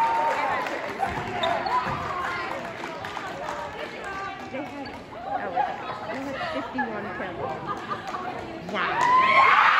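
Young women talk and chatter together in a huddle.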